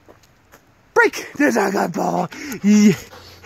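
A dog howls and yips loudly close by.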